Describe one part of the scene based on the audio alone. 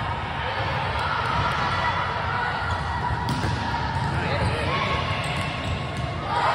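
A volleyball is struck with sharp smacks in a large echoing hall.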